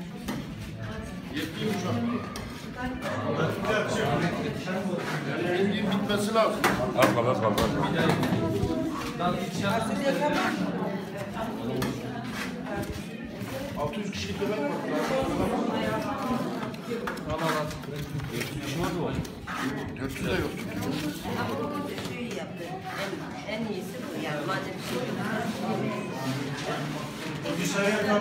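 A crowd of women and men chatter nearby in a room with some echo.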